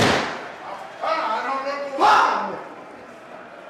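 A young man shouts angrily.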